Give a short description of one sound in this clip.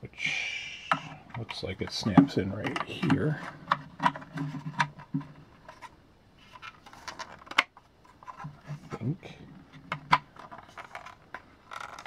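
Plastic toy parts click and rattle as hands fit them together.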